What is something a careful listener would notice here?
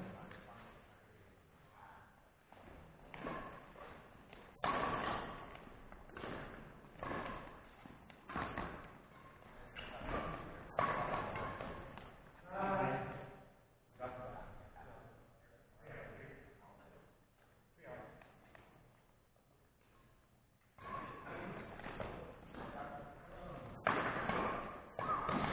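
Rackets strike a shuttlecock again and again in a large echoing hall.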